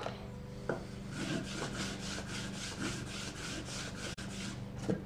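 A metal blade scrapes back and forth on a sharpening stone in quick, even strokes.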